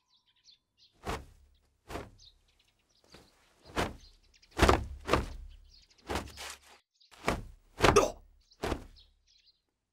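Feet stamp and scuff on a hard floor.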